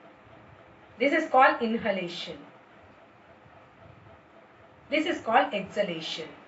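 A middle-aged woman speaks calmly close by, in short phrases with pauses.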